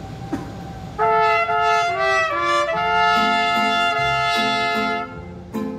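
Trumpets play a loud, bright tune.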